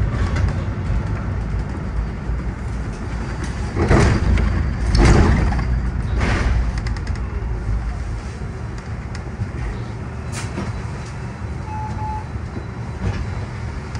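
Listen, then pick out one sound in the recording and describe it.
A bus engine rumbles low and steady from inside the bus.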